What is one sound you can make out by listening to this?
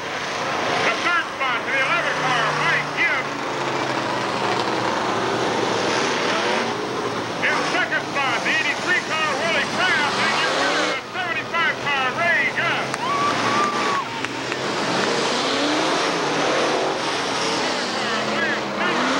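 Race car engines roar and rev around a track.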